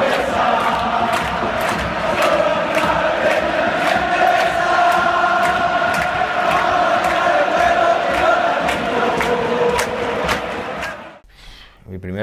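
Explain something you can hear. A large crowd sings a chant together.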